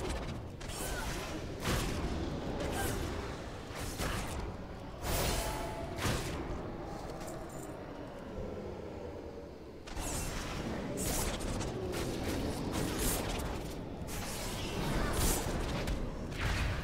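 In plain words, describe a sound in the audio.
Blows strike a monster with sharp impacts.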